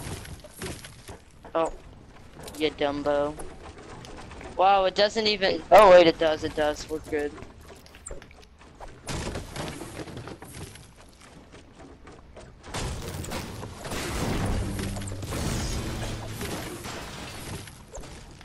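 Wooden walls are built with quick thuds.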